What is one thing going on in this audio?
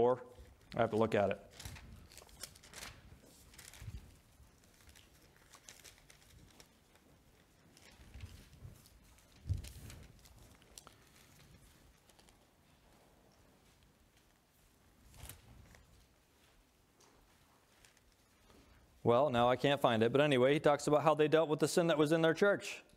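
A man reads out calmly through a microphone.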